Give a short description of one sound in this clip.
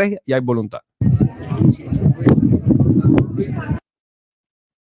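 A crowd talks and murmurs outdoors.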